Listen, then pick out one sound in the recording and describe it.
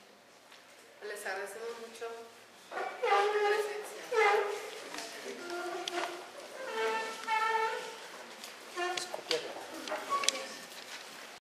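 A woman speaks loudly and agitatedly.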